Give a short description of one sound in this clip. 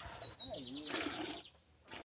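Milk squirts in spurts into a metal pail.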